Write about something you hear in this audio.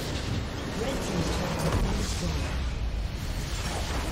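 A structure explodes with a booming blast.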